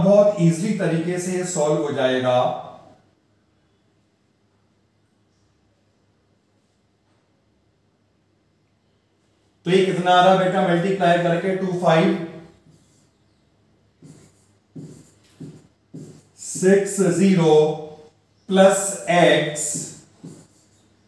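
A man explains calmly into a close microphone, with pauses.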